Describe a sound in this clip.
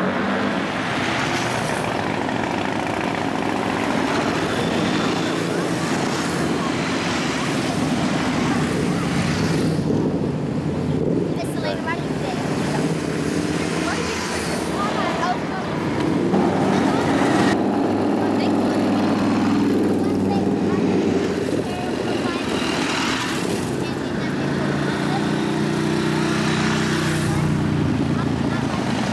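Motorcycle engines rev and roar as each bike passes.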